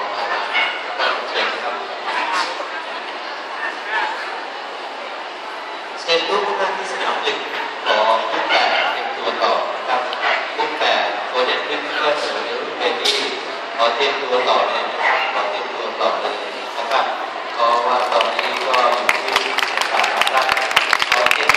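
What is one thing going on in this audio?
A crowd of men and women chatters in a large echoing hall.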